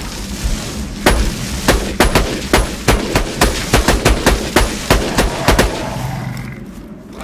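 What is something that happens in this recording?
A rifle fires a rapid series of sharp shots.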